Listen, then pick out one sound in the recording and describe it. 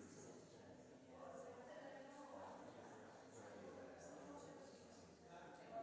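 Men and women chat quietly in a large echoing hall.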